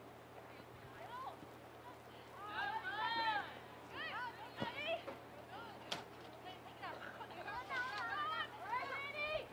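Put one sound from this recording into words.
Young women shout to each other across an open field outdoors.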